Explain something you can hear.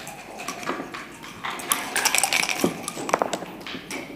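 Dice rattle and tumble in a cup.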